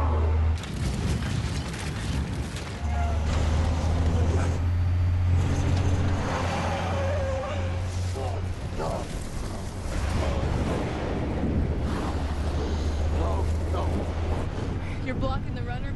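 A heavy truck engine rumbles loudly and steadily.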